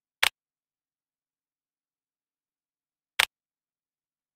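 Short clicks tick now and then.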